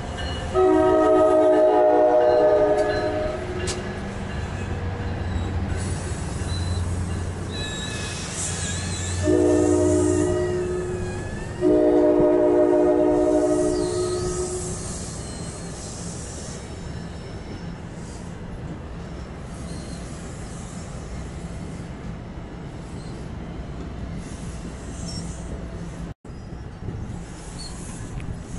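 A passing train rumbles and clatters along the tracks.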